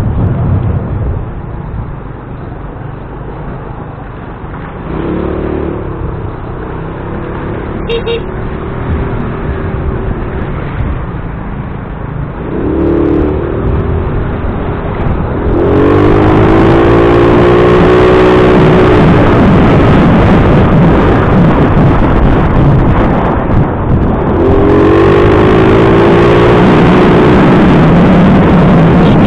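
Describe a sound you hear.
A motorcycle engine hums close by and revs up and down.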